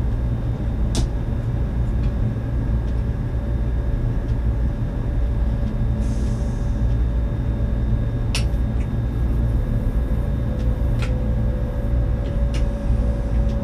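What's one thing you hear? Train wheels click now and then over rail joints.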